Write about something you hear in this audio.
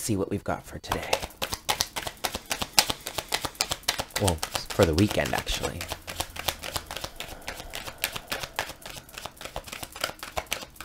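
A deck of cards taps and shuffles in someone's hands with quick clicks.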